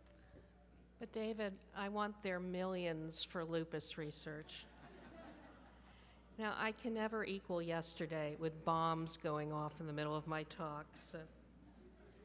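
A middle-aged woman speaks with animation into a microphone in a large hall.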